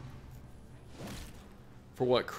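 A sword slashes and strikes with a heavy hit.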